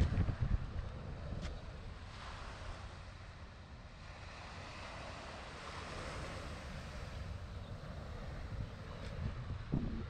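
Small waves lap gently on a sandy shore.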